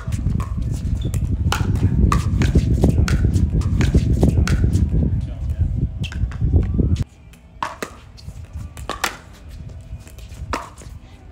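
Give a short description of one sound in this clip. Paddles pop sharply against a plastic ball in a quick back-and-forth rally outdoors.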